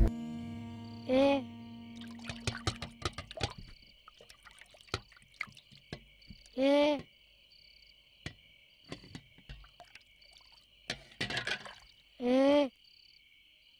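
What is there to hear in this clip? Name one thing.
A young boy speaks softly nearby.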